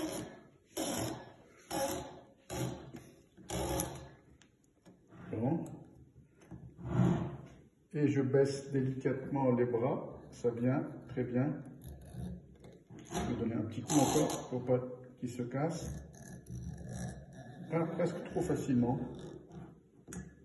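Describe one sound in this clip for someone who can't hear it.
A corkscrew squeaks as it twists into a cork.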